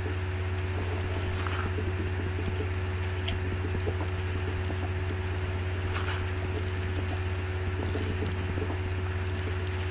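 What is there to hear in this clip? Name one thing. Blocks of earth and stone crunch as they are dug out.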